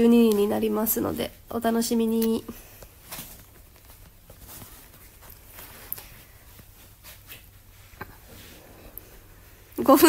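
A young woman speaks softly and playfully close to a phone microphone.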